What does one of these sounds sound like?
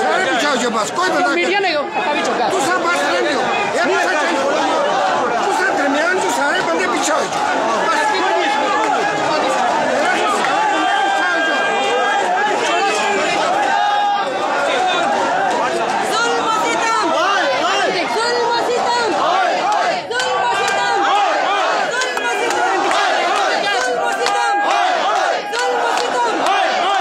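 A large crowd of men and women chants and shouts loudly outdoors.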